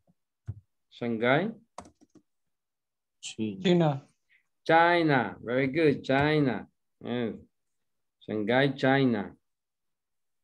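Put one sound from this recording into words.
A man speaks calmly and slowly over an online call.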